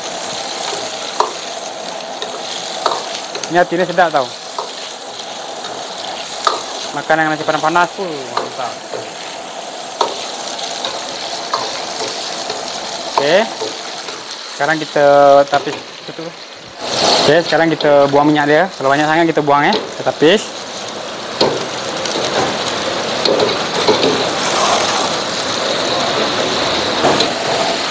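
Oil sizzles steadily in a hot wok.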